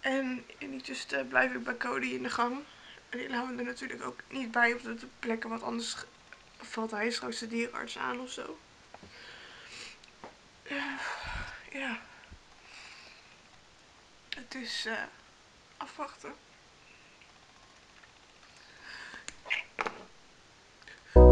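A young woman talks close by, in an emotional, tearful voice.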